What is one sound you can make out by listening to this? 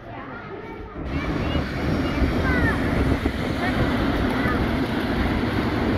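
A train rolls past with a steady rumble.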